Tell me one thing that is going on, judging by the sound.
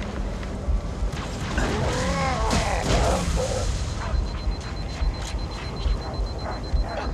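Gunshots crack in short, repeated bursts.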